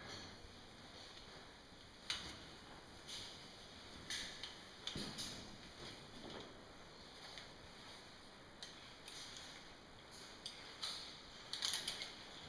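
Metal climbing gear clinks and rattles close by.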